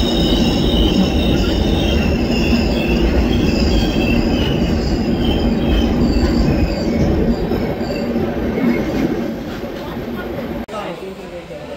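Wheels clatter over rail joints.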